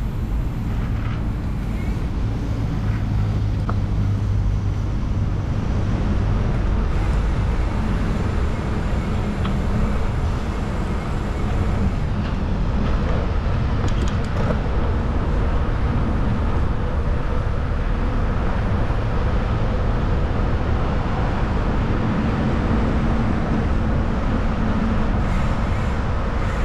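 Wind rushes and buffets loudly outdoors as a bike rides along.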